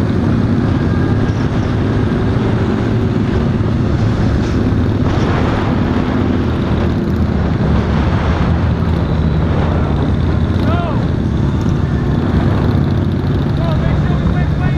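Other motorcycles roar nearby.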